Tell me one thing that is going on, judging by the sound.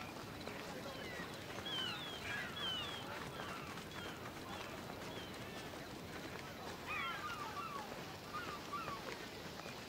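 Birds chirp outdoors.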